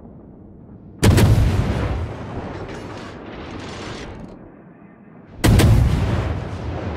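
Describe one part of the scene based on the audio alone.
Heavy naval guns fire with deep, booming blasts that rumble away.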